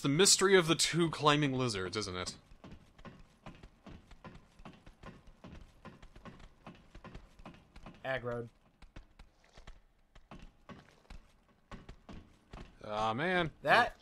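Hands and feet knock on ladder rungs.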